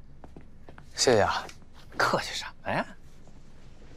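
A middle-aged man answers warmly nearby.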